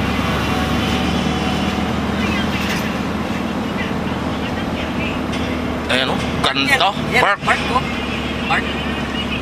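A vehicle hums and rumbles steadily as it drives along.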